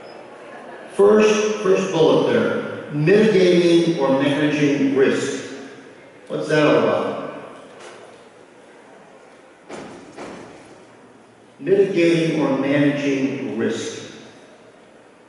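A man speaks steadily through a loudspeaker in a large echoing hall.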